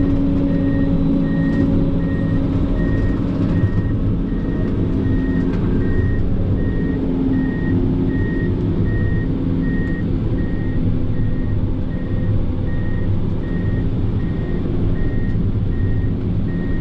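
A heavy diesel engine rumbles steadily close by, heard from inside a cab.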